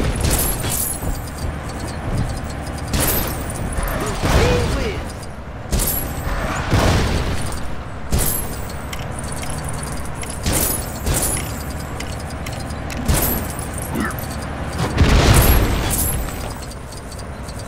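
Small coins jingle as they are collected.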